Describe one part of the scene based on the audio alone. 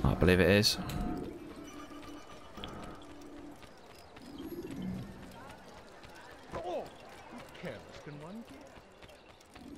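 Footsteps run quickly on stone.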